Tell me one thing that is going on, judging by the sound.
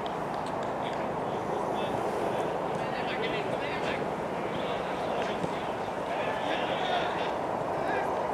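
Players kick footballs with dull thuds outdoors.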